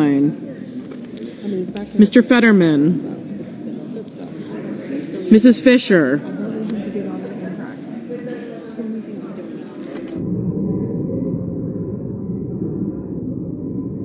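Many men and women chat quietly among themselves in a large echoing hall.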